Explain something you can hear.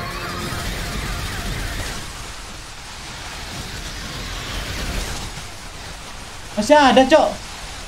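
Gunfire and explosions rumble from a video game.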